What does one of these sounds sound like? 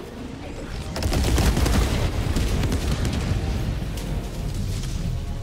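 Explosions boom and rumble loudly.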